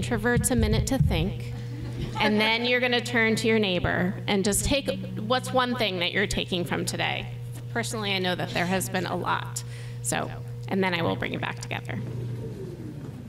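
A woman speaks calmly into a microphone over loudspeakers in a large room.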